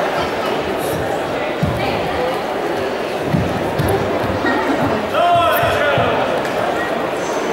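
Feet thud and shuffle on a wooden floor in a large echoing hall.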